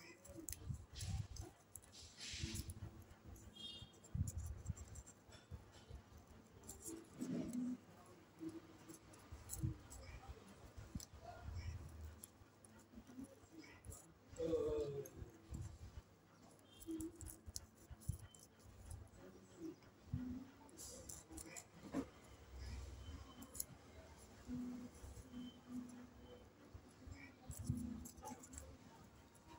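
Paper rustles and crinkles in a hand.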